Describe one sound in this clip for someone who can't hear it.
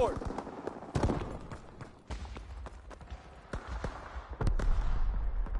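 A rifle fires single sharp shots that echo.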